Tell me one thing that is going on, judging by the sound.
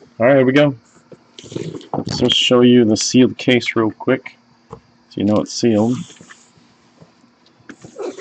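A cardboard box is handled and turned over.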